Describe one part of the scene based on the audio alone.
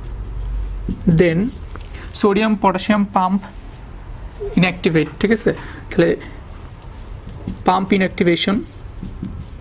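A young man lectures calmly and clearly, close to a microphone.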